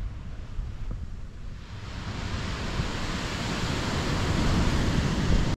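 Gentle waves wash onto a beach and swell louder.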